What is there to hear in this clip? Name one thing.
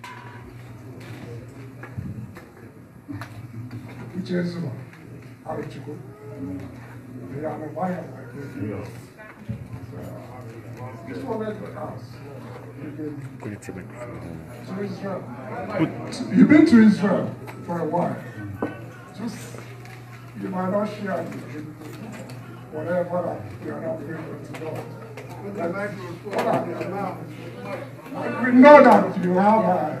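A crowd murmurs and calls out.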